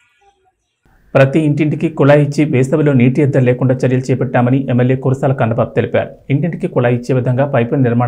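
A man speaks steadily and clearly into a close microphone.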